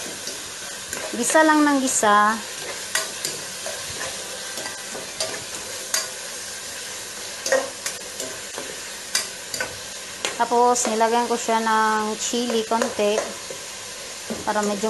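Food sizzles in a hot pot.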